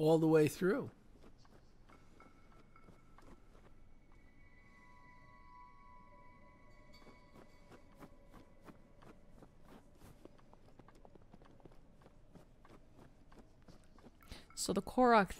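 Footsteps crunch softly on snow and grass.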